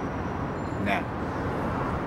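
A young man speaks softly and briefly, close by.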